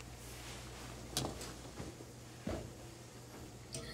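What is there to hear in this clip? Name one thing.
Heavy fabric rustles and flaps as it is handled.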